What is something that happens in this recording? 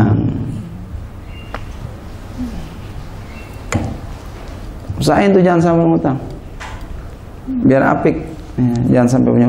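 A man speaks calmly into a microphone, in a slow preaching manner.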